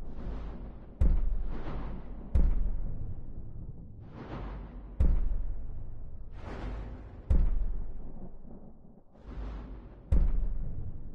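Deep, ringing booms strike at intervals and slowly die away.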